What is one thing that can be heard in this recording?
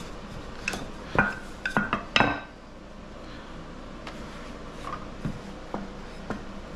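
A rolling pin knocks and clatters on a wooden board.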